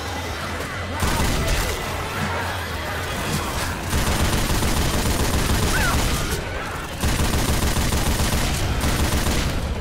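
A mounted machine gun fires in rapid, loud bursts.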